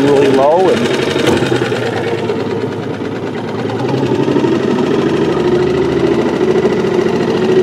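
An outboard motor hums steadily up close.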